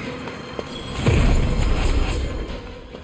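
A magic spell bursts with a whooshing crackle.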